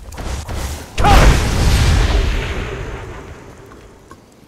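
A magic spell bursts with a loud rushing whoosh and a deep rumble, then slowly fades.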